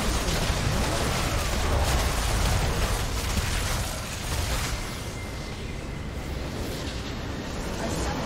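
Game spells and weapons clash in a busy fight.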